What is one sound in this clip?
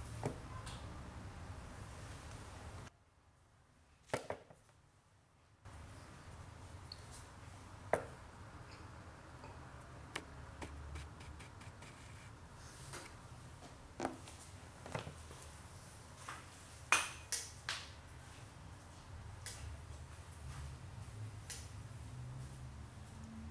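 Small kittens shift and rustle softly on a leather sofa.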